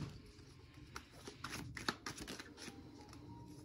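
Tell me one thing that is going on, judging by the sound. Playing cards rustle and flick as they are handled.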